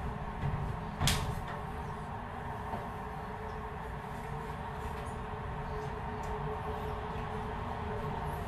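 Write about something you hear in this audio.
A cloth rubs and squeaks against window glass.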